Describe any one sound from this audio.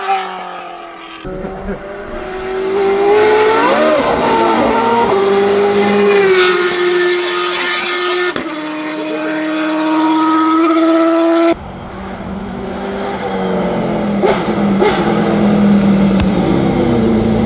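A racing car engine screams loudly, revving up and down as the car shifts gears.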